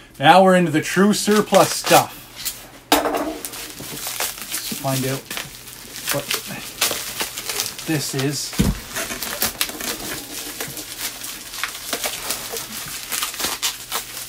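Bubble wrap crinkles and rustles in a man's hands.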